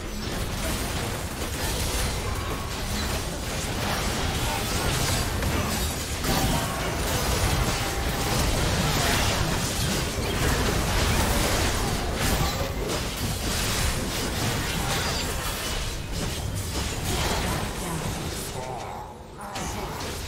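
Spell effects whoosh and crackle during a game fight.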